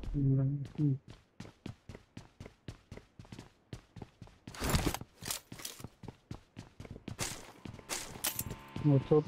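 Footsteps patter quickly across a wooden floor.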